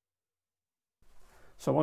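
An older man speaks calmly into a clip-on microphone, close by.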